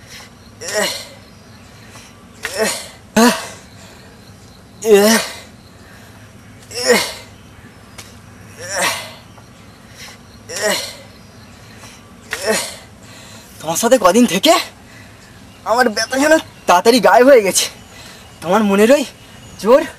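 A young man shouts loudly in short repeated bursts close by.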